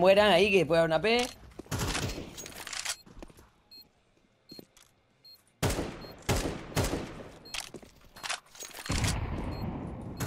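A rifle is reloaded with metallic clicks and clacks.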